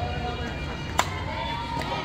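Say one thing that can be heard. A metal bat cracks against a ball.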